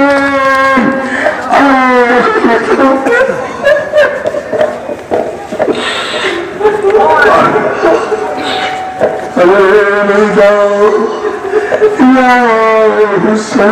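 A man chants a mournful lament loudly through a loudspeaker.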